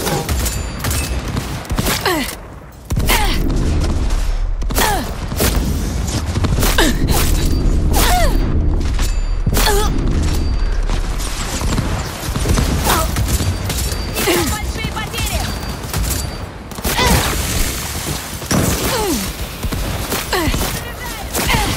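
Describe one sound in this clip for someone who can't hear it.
Gunfire from a rifle cracks in rapid bursts.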